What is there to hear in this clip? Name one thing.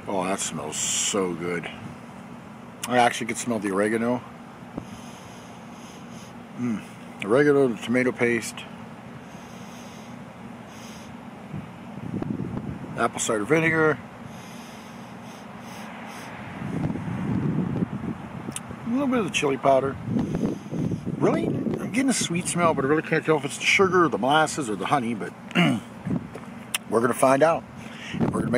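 A man talks close by, calmly and with pauses.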